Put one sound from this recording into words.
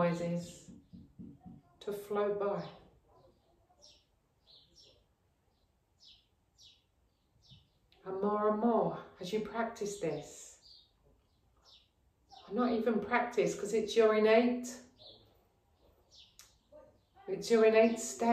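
A woman speaks calmly and slowly, close by, with long pauses.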